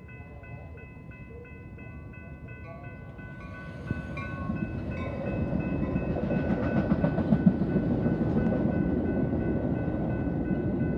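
A passenger train approaches and rumbles past close by, growing louder.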